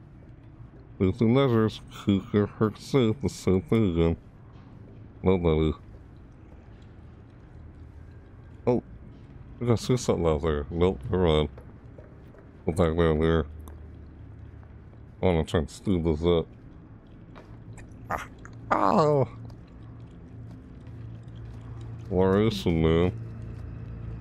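A young man talks into a close microphone in short, animated bursts.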